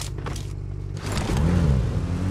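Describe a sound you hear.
A jeep engine revs as it drives past.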